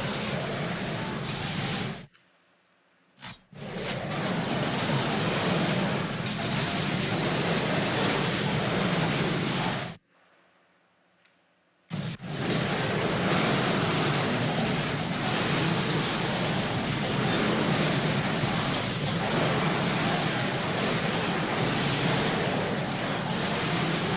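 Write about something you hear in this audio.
Magic spells crackle and burst amid fighting.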